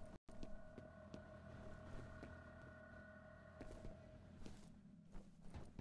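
Footsteps thud steadily on a hard floor, then clank on a metal walkway.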